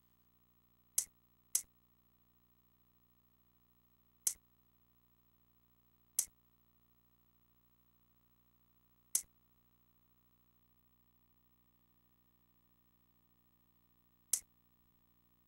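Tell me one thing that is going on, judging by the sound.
A computer menu gives short sharp clicks as buttons are pressed.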